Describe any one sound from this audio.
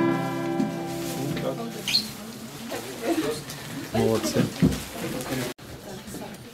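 A man strums an acoustic guitar.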